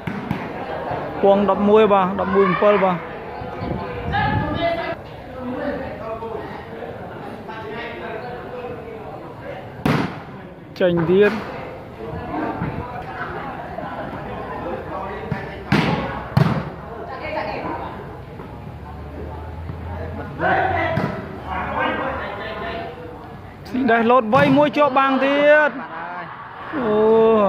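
Men shout and call out loudly under an echoing roof.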